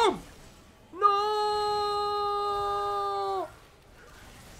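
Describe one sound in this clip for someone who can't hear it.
A young man lets out a long, drawn-out shout.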